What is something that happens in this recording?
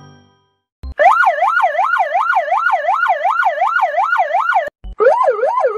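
A police motorcycle siren wails up and down.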